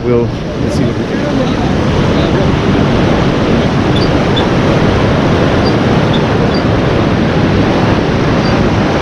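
Waves wash onto a beach.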